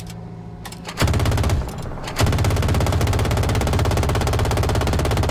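A helicopter's rotor thumps loudly and rapidly.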